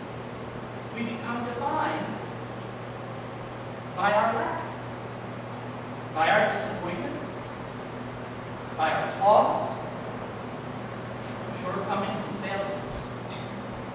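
A man speaks in short phrases through a microphone in an echoing room.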